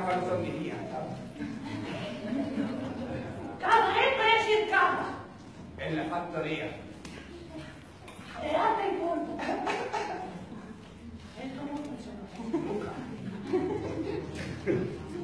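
A young man speaks with animation in an echoing hall.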